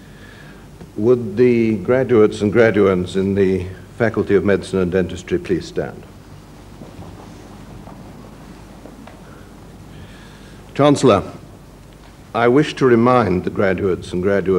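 A man speaks calmly through a loudspeaker in a large echoing hall.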